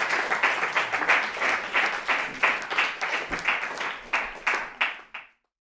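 An acoustic guitar is strummed in a quick, even rhythm.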